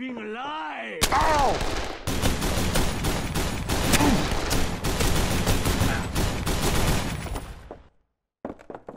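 A gun fires in rapid bursts of loud shots.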